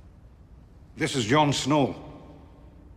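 A man speaks a few words calmly, close by.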